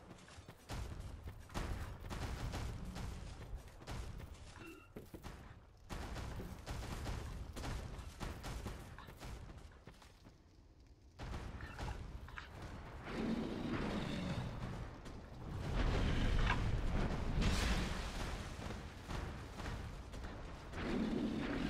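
Armoured footsteps crunch on gravel.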